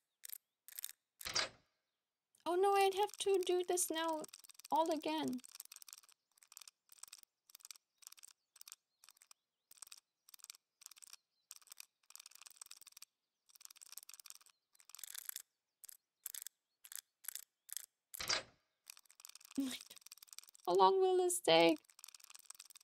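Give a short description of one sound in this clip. A safe dial clicks rapidly as it turns.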